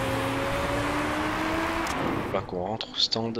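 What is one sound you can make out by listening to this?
A racing car engine whines and slowly rises in pitch.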